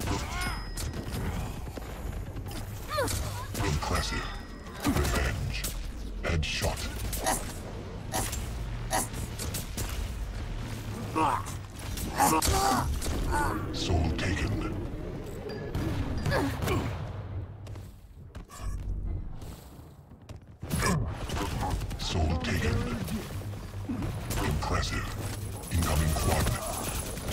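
Game gunfire and energy blasts crackle and zap in quick bursts.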